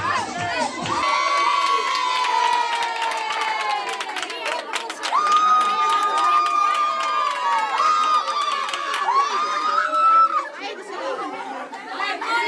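Several people clap their hands in rhythm.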